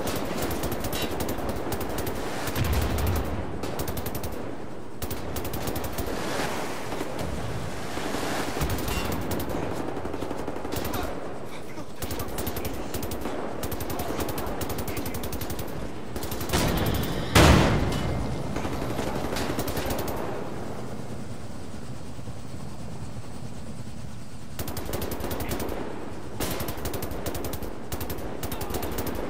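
A heavy machine gun fires in long rapid bursts.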